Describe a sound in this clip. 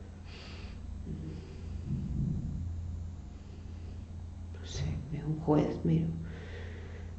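An elderly man speaks softly nearby.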